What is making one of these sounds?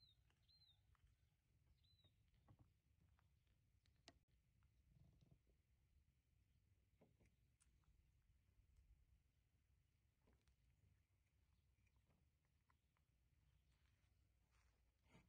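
A small monkey chews and munches on fruit up close.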